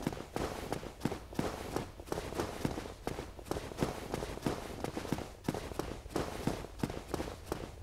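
Armoured footsteps thud quickly on a stone walkway.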